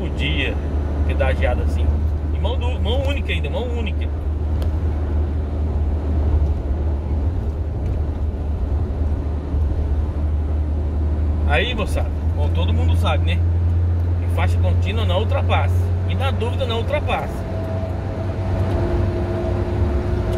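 A car engine hums steadily with road noise.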